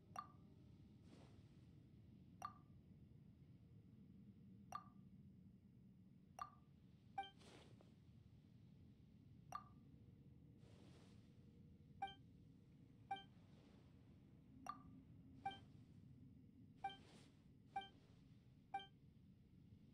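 Short bright chimes ring again and again at an uneven pace.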